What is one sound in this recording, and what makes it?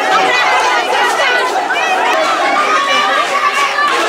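Young women chant together.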